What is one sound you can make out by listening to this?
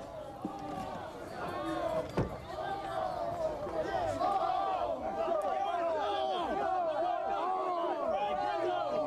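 A crowd of people shout and cheer loudly nearby.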